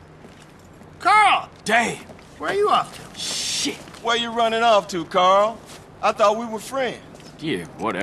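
A young man shouts mockingly up close.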